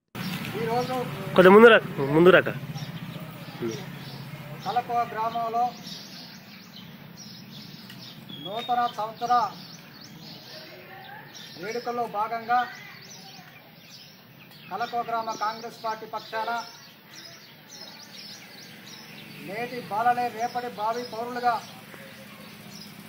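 A man speaks loudly in short phrases with pauses.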